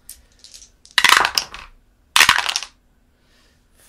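Dice clatter down through a wooden dice tower.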